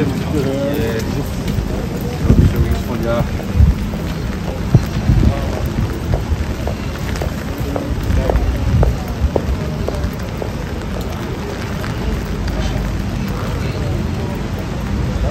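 Footsteps splash on wet pavement nearby.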